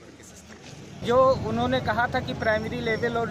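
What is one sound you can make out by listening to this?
A middle-aged man speaks close to a microphone.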